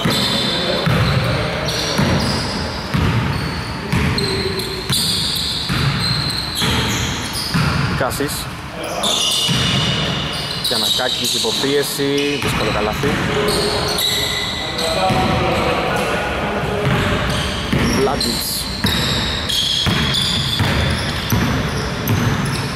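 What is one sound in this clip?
Sneakers squeak on a wooden court in an echoing gym.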